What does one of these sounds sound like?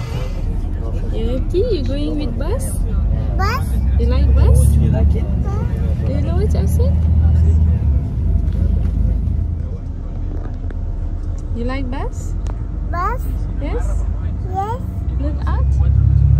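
A young girl talks and babbles close by.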